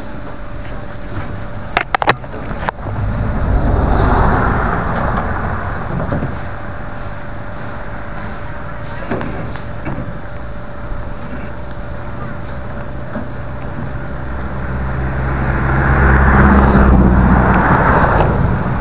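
Plastic water jugs thump and knock as they are handled close by.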